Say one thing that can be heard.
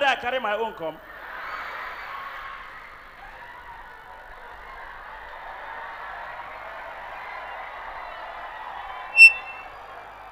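A crowd laughs and cheers loudly in a large hall.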